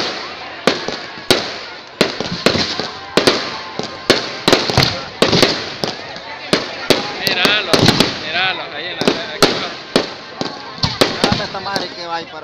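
Firecrackers bang rapidly and loudly.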